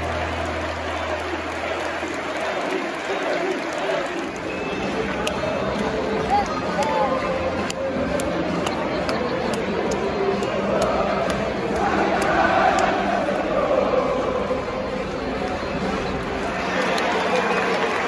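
Spectators nearby clap their hands.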